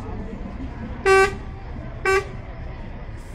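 A lorry's horn honks twice loudly nearby.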